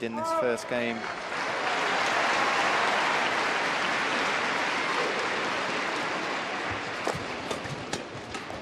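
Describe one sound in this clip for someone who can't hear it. A crowd applauds and cheers in a large echoing hall.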